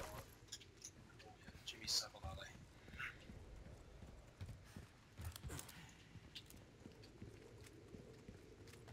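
Heavy footsteps thud on wooden boards and gravel.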